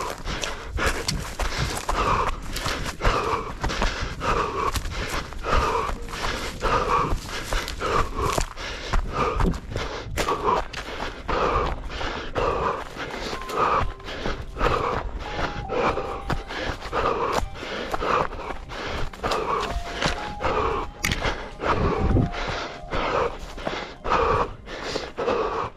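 Running footsteps crunch quickly and steadily over dry, stony ground.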